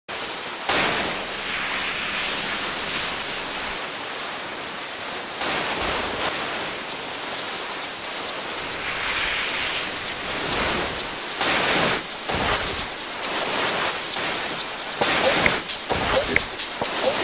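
Snowboards scrape and hiss over packed snow.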